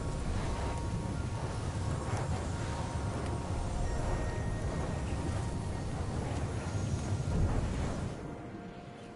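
Fiery magic blasts crackle and rumble steadily.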